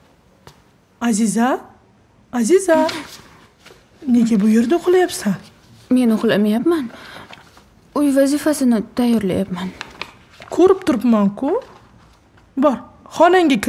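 A woman speaks, close by.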